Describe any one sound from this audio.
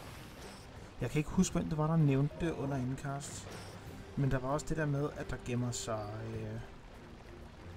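An elderly man talks with animation close to a microphone.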